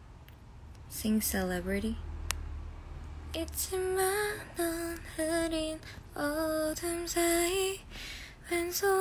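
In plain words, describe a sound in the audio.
A young woman talks close to a phone microphone, in a lively way.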